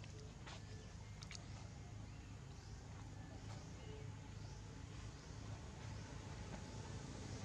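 A monkey chews and bites into soft fruit up close.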